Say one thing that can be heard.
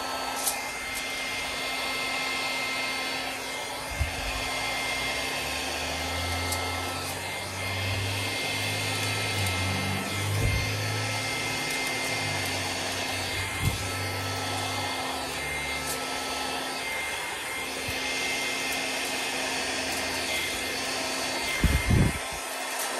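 A hair dryer blows with a steady whirring hiss.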